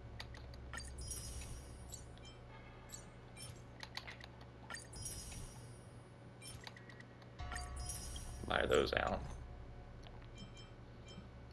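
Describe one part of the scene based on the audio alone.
Soft menu clicks and sparkling chimes sound.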